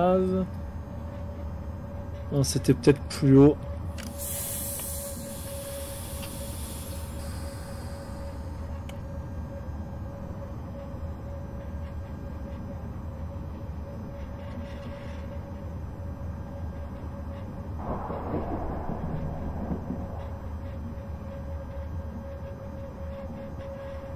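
An electric motor hums with a steady whine.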